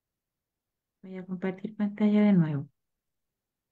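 A woman speaks briefly over an online call, heard through a headset microphone.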